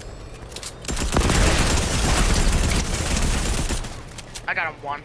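A burst of shattering, crackling impact sounds erupts.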